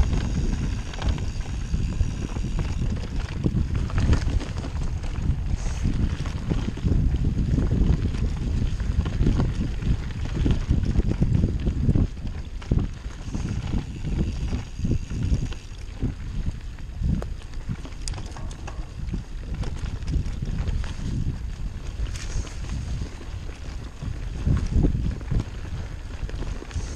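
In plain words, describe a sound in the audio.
Bicycle tyres crunch and rumble over a dry forest trail.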